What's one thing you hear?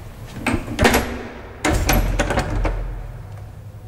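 Sliding lift doors rattle and thud as they close.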